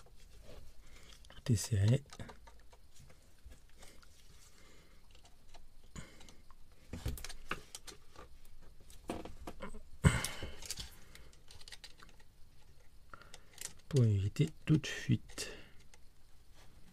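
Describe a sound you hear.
A screwdriver clicks and scrapes against metal fittings.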